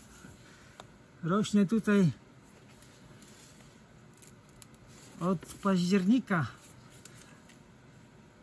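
Large leaves rustle softly as hands push through them.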